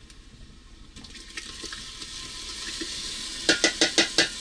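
Liquid pours from a bowl into a metal pot.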